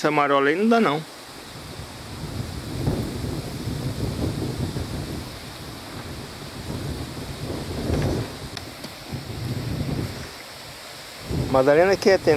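Wind rumbles outdoors across open water.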